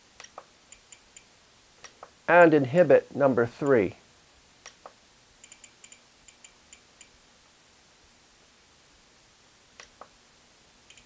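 Buttons on a handheld controller click.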